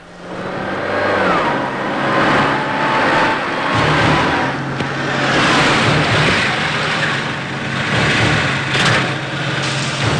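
A car engine hums as the car drives closer on a wet road.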